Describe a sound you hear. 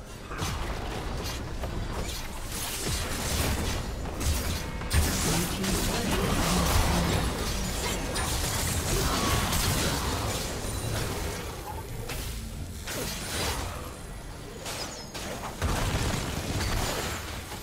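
Game spells and attacks crackle and blast in a dense battle.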